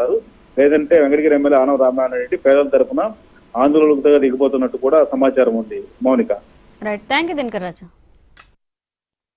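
A man speaks calmly over a phone line.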